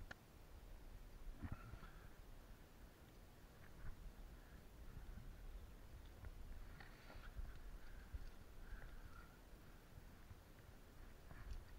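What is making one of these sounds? A climbing rope rustles and brushes against stone.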